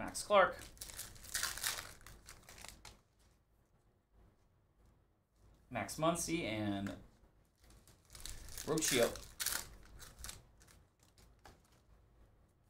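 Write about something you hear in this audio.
Trading card packs rustle and crinkle as hands tear them open.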